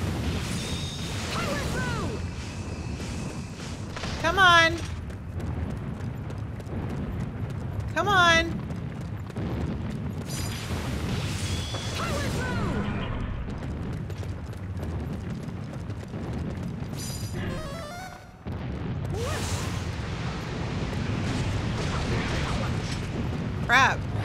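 Magic spells whoosh and chime in bursts.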